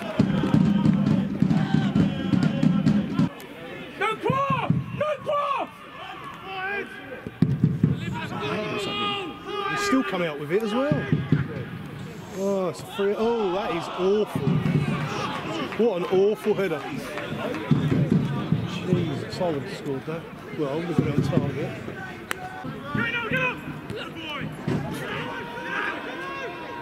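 Men shout across an outdoor pitch.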